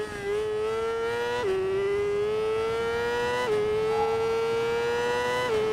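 A motorcycle engine revs high and climbs in pitch, dropping briefly at each gear shift.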